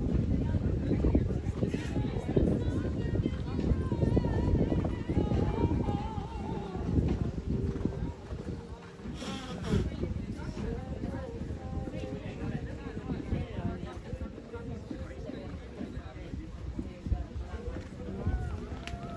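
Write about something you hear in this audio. A horse gallops with dull hoofbeats thudding on soft sand.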